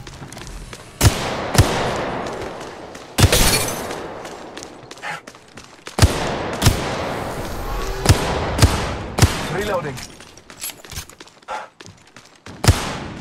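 Gunshots crack out in short, sharp bursts.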